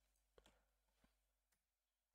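Fingers tap lightly on a laptop keyboard.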